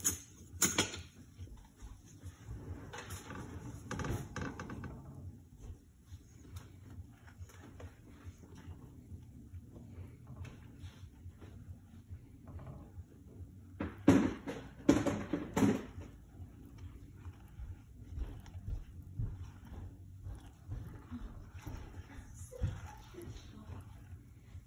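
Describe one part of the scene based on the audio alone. A spatula scrapes and knocks against a pan.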